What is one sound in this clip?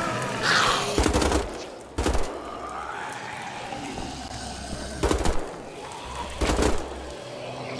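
Guns fire loud single shots.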